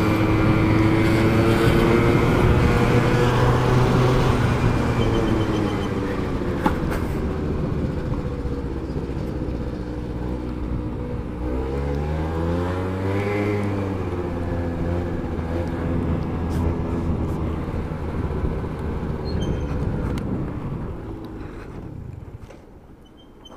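A motorcycle engine hums close by and rises and falls in pitch as it speeds up and slows down.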